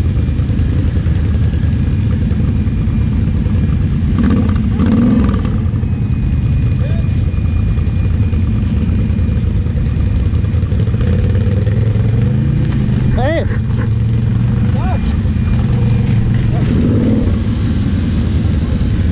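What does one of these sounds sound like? A quad bike engine idles and revs loudly nearby.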